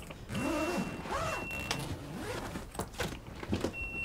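A zipper runs along a suitcase.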